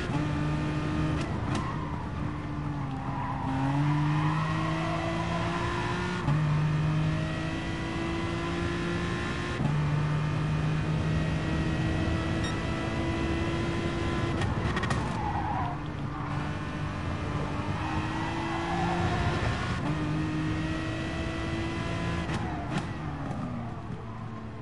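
A racing car engine roars at high revs, rising in pitch and dropping with each gear change.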